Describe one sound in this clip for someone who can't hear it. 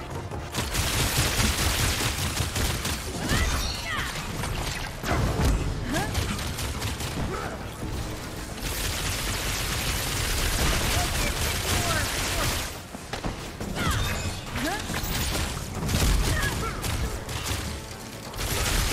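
Energy blasts and explosions crackle and boom loudly.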